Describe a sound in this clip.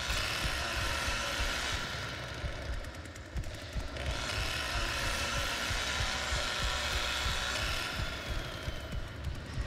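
A chainsaw engine idles with a low, rough rumble.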